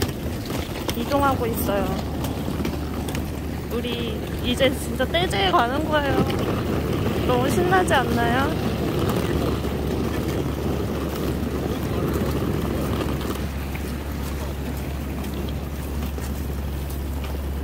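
Suitcase wheels rumble over pavement.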